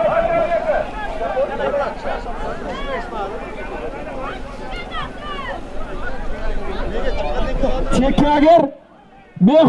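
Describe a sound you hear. A crowd of men shouts and talks loudly outdoors.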